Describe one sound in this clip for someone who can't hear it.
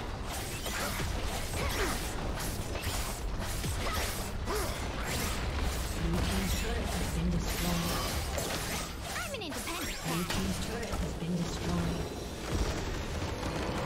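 Magic attacks crackle and clash in a game battle.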